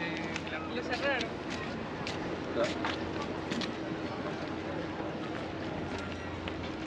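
Footsteps tap on a stone pier outdoors.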